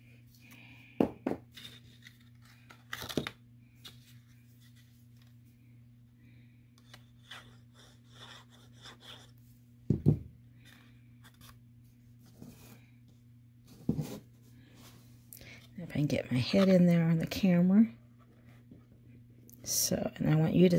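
Paper rustles and taps as it is handled and folded.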